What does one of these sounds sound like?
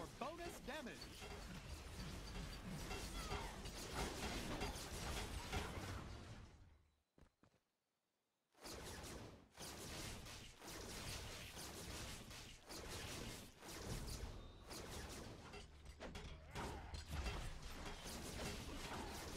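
Blows and magical blasts crash in a video game fight.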